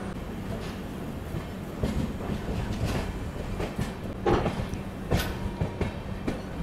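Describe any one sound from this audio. Train wheels clatter and knock over rail joints.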